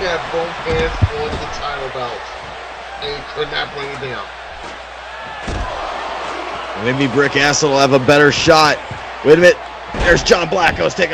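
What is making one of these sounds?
Heavy bodies thud against a wrestling ring.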